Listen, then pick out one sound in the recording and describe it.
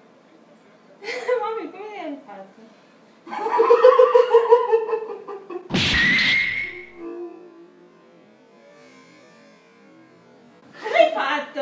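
A young woman laughs close by.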